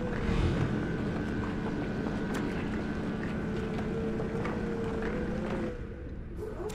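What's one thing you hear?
A mechanical drill whirs steadily as it grinds into crystal.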